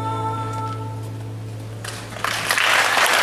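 An acoustic guitar chord rings through a loudspeaker and fades.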